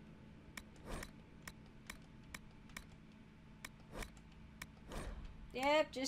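Soft game menu clicks tick at a steady pace.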